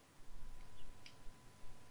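A fire crackles softly in a furnace.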